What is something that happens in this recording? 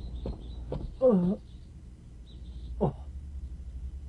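A man gives a short, surprised call nearby.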